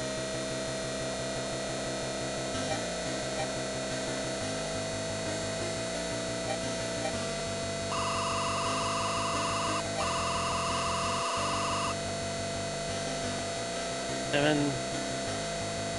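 Chiptune video game music plays steadily.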